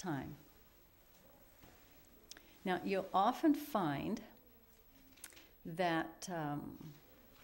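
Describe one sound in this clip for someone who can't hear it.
An older woman speaks calmly and slowly into a nearby microphone, with pauses.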